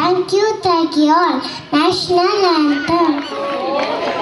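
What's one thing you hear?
A young girl sings into a microphone through loudspeakers.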